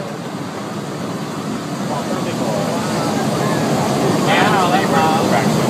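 A waterfall rushes and splashes, growing louder.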